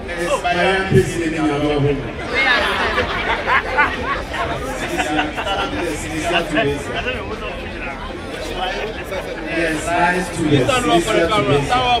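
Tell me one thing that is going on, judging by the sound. A man speaks with animation through a microphone over loudspeakers.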